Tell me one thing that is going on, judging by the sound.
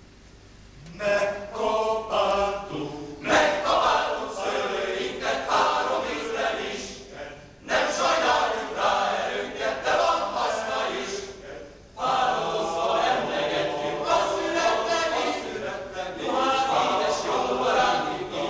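A mixed choir sings in a large echoing hall.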